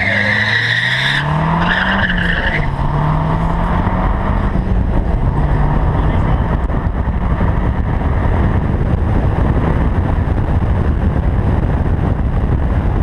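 A car engine roars as the car accelerates hard, shifting through gears.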